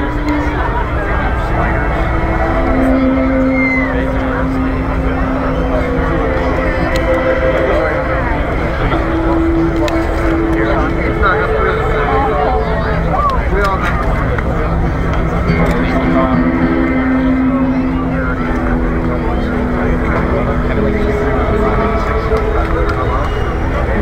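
A large crowd chatters and murmurs nearby.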